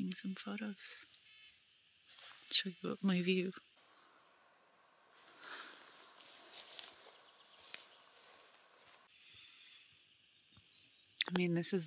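A young woman talks calmly and close by.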